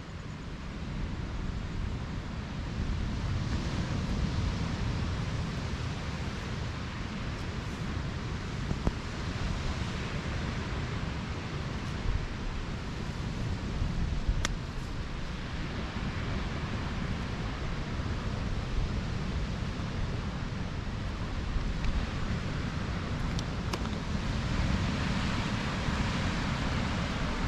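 Wind blows steadily outdoors, rustling through bushes and grass.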